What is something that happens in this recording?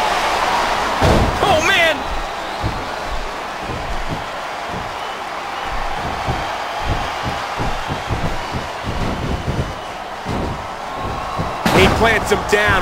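A wrestler's body slams onto a wrestling ring mat with a heavy thud.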